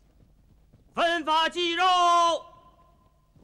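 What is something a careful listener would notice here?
A man calls out loudly in a long drawn-out cry.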